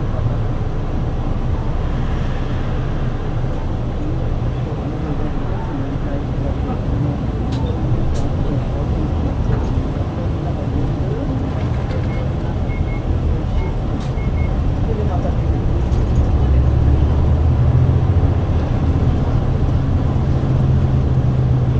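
The bus interior rattles and creaks as the bus rolls along.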